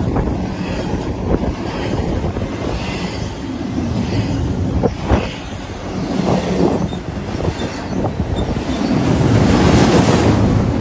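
A freight train rumbles past close by, steady and loud.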